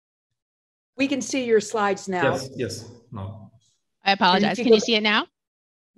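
A middle-aged woman speaks calmly over a headset microphone in an online call.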